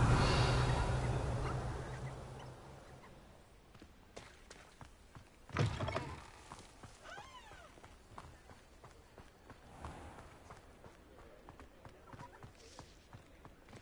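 Footsteps patter quickly on stone and dirt.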